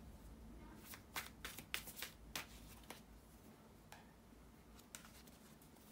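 Playing cards shuffle with soft clicks.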